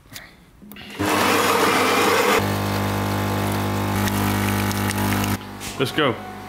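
A coffee machine hums and grinds loudly.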